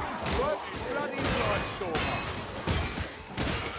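A weapon strikes enemies with heavy thuds.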